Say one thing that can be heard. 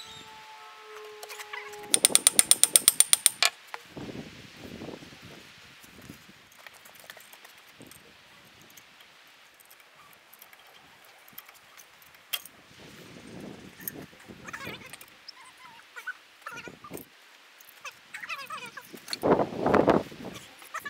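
Metal clanks.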